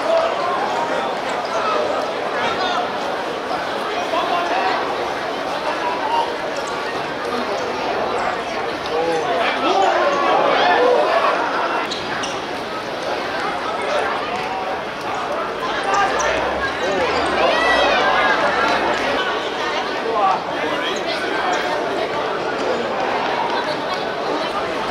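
Spectators chatter and call out.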